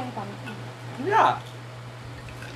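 A boy laughs close by.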